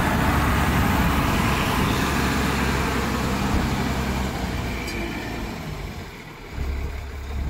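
A bus engine rumbles loudly close by as the bus rolls past.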